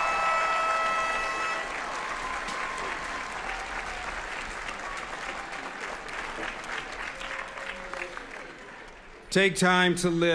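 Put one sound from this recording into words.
A large outdoor crowd applauds.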